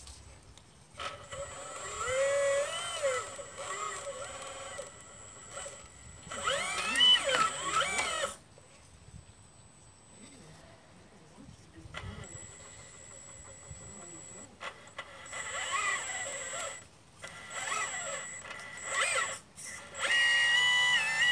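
Small electric motors whine in bursts, rising and falling in pitch.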